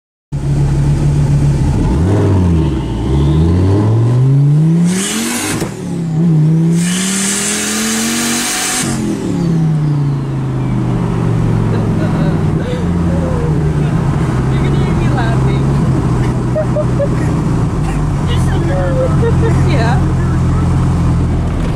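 A car engine hums and revs as the car drives along a road.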